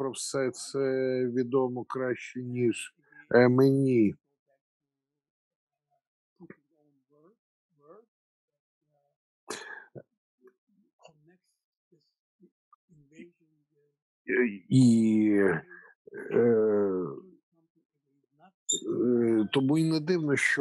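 An elderly man speaks calmly through an online call, pausing between phrases.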